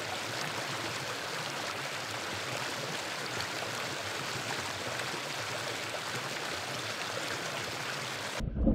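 A shallow stream flows and trickles steadily outdoors.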